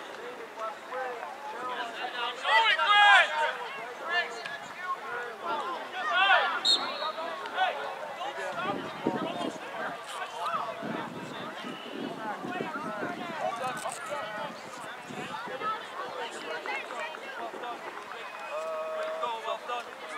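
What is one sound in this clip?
Spectators shout and cheer loudly nearby outdoors.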